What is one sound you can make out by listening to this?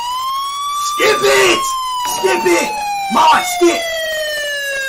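A young man shouts with animation close by.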